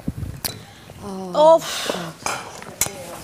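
A young woman answers briefly, close by.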